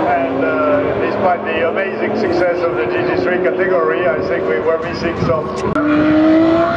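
A sports car engine roars as the car accelerates past on a track.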